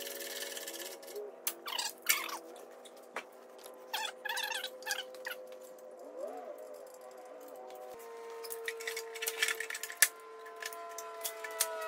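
Metal tools clink and clank against an engine.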